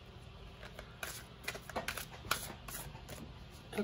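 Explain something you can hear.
Playing cards riffle and snap as they are shuffled.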